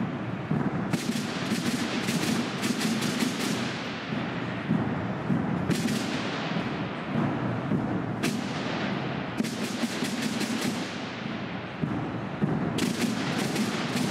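A drum and brass band plays a march in a large echoing hall.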